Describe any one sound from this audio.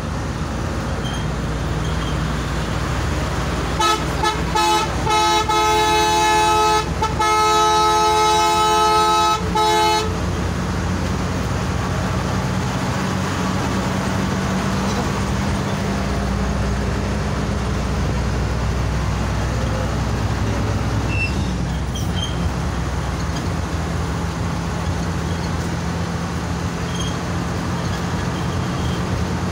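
Tyres roar on a smooth road.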